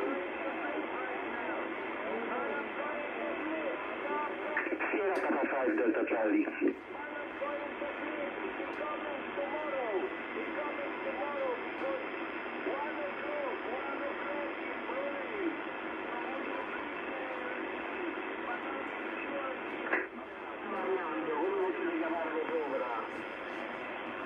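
A radio receiver hisses with steady static through its speaker.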